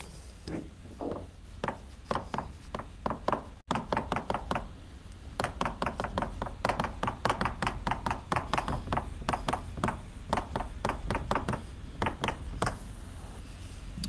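Chalk taps and scratches quickly on a blackboard.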